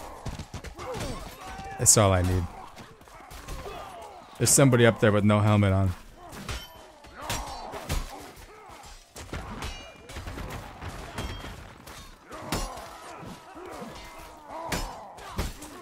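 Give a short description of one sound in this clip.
Steel blades clash and clang in a fight.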